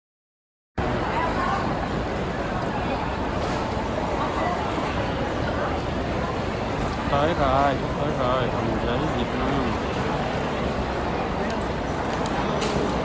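A waiting crowd chatters in a large echoing hall.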